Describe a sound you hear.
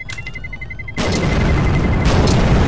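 A grenade explodes with a loud bang.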